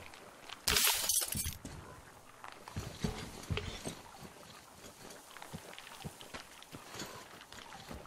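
Footsteps crunch over snow and gravel.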